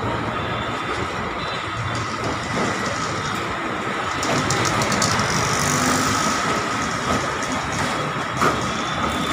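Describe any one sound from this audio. Traffic rumbles past on a nearby street outdoors.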